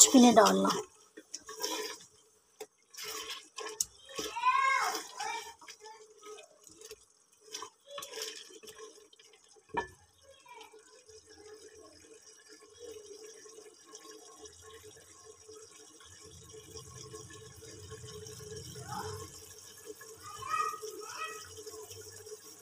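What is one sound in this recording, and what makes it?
Meat sizzles in a pot.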